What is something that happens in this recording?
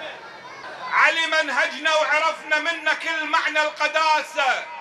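A man speaks loudly and with feeling into a microphone.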